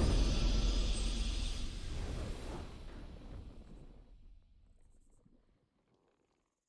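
A triumphant victory fanfare swells and then fades away.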